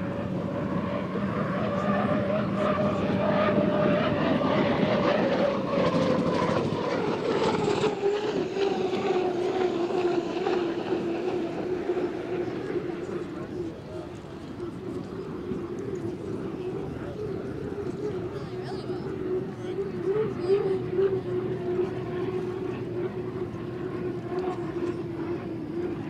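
A racing boat engine roars loudly, its pitch dropping as it speeds past.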